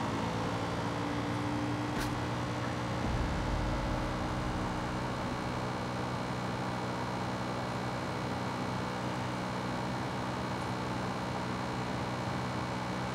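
A quad bike engine hums steadily while driving over a dirt track.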